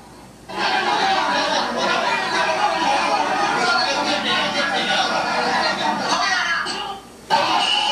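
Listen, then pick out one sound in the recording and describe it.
A large crowd shouts and cheers loudly.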